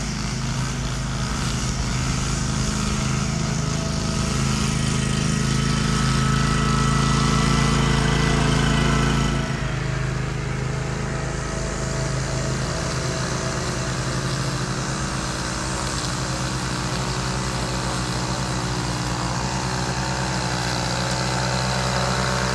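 A petrol string trimmer whines steadily close by, cutting grass.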